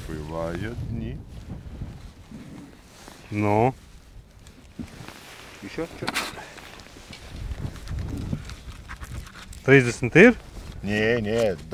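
An elderly man speaks calmly into a clip-on microphone, close by.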